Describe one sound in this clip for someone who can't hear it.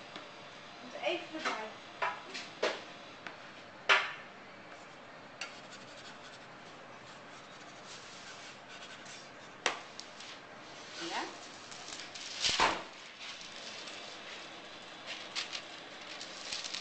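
A metal dough scraper scrapes and taps on a counter.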